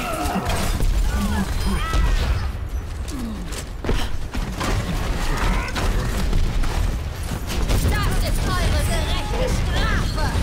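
Energy weapons fire in quick bursts with whooshing shots.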